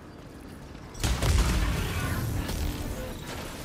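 An explosion booms with a deep rumble.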